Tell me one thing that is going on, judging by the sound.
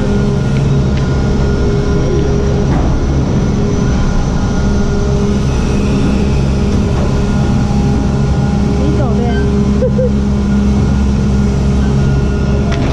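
Gondola lift machinery hums and whirs steadily.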